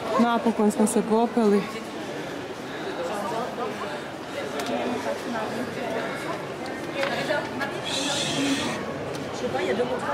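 A crowd of people chatters in the background outdoors.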